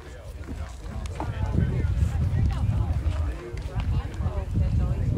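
Young men call out across an open field in the distance.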